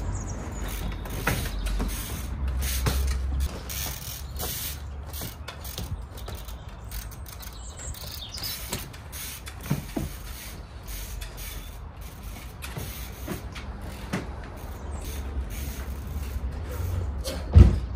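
Bicycle tyres thud onto wooden pallets.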